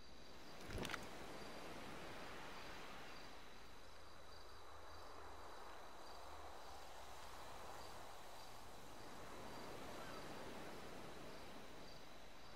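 Waves wash softly against a rocky shore.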